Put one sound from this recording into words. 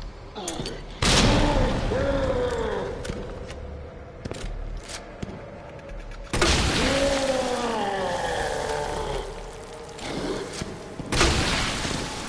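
A shotgun fires loud, echoing blasts.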